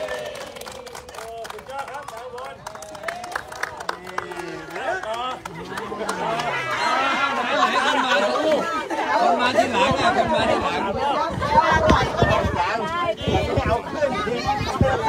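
Men and women chatter and laugh close by.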